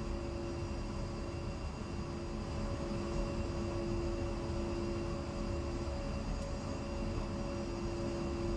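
A jet engine idles with a steady, low hum and a high whine.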